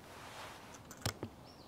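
A metal latch clicks open.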